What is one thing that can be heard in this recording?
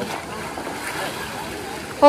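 A man splashes in a pool of water.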